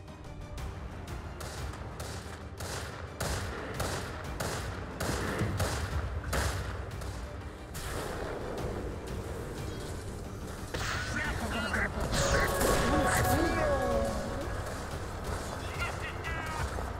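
Spell effects crackle and burst in quick succession.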